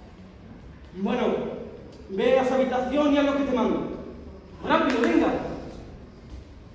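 A man speaks loudly and theatrically, heard from a distance in a hall.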